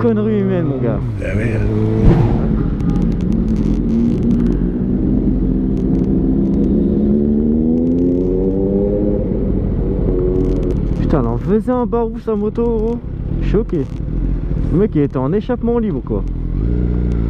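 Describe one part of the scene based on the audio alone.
A motorcycle engine rumbles steadily close by.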